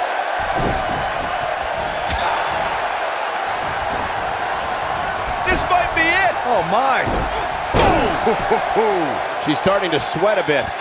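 A large crowd cheers and roars steadily in an arena.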